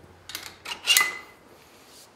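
Metal dumbbells clank against a rack.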